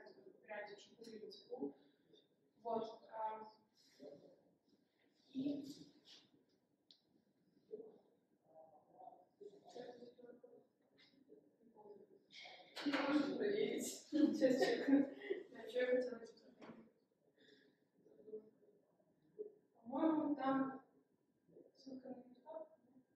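A young woman speaks calmly to an audience in a room with a slight echo.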